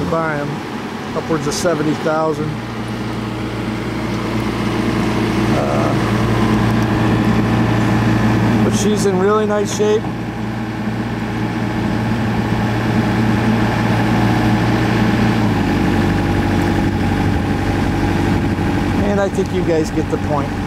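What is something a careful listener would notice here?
A large mower engine runs with a steady, low drone.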